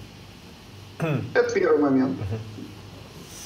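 A man speaks briefly and animatedly nearby.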